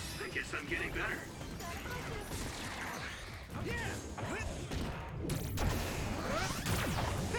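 Weapons clash and slash in a fast fight.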